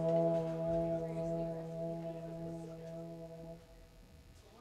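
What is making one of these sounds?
An electric bass holds a low note that rings and then stops.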